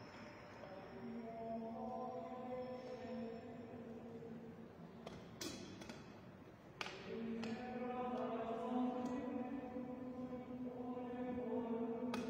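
A man chants slowly in a large echoing hall.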